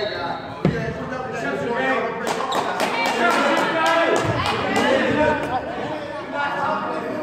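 Men shout and call out in a large echoing hall.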